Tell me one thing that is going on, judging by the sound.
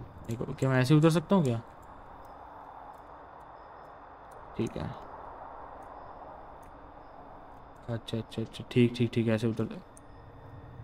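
A young man talks close to a microphone, with animation, in short bursts.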